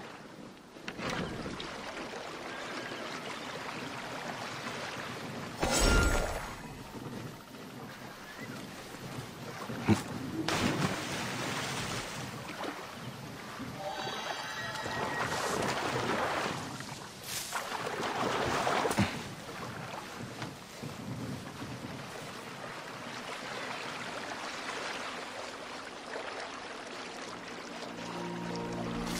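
Water laps and splashes against a small boat moving along a river.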